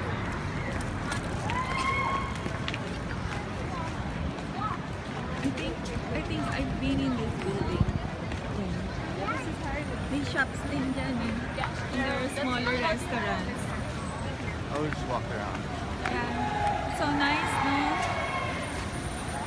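Adult men and women talk nearby outdoors.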